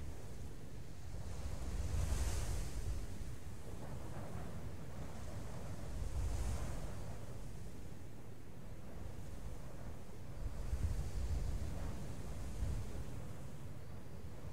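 Waves wash and roll in slow swells.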